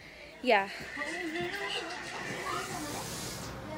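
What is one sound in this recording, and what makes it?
A young woman speaks close by with animation.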